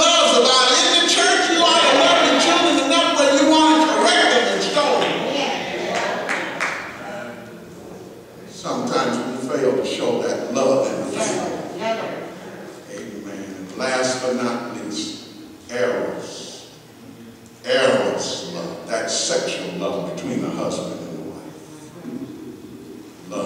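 An elderly man preaches with feeling into a microphone, in an echoing hall.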